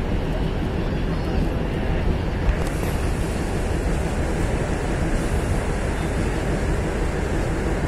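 A diesel multiple unit train rumbles along the track, heard from an open door.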